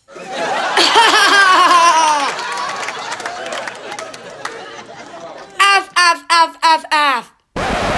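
A young boy sings loudly and playfully, close by.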